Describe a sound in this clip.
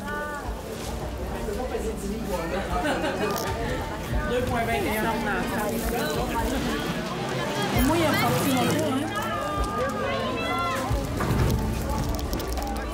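Men and women talk and chatter nearby, outdoors.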